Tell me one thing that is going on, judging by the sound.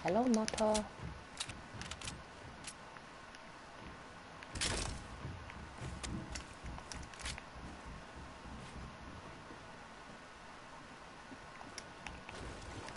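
Building pieces snap into place with short, sharp clicks.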